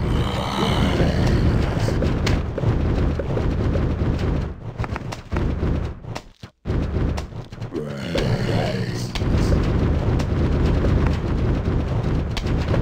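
Plants in a video game pop rapidly as they fire peas.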